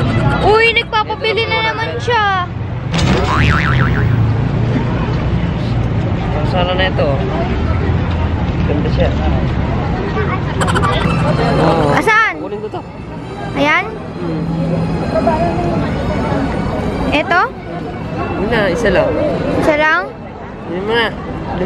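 A young woman talks close by in a lively, chatty way.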